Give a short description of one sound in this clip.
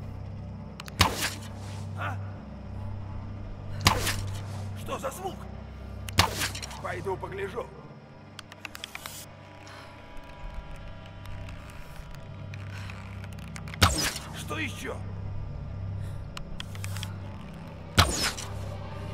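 A bowstring snaps as arrows are loosed, one at a time.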